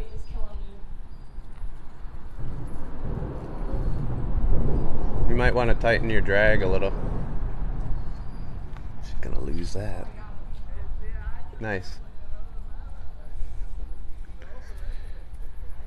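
Water laps gently against bridge pillars.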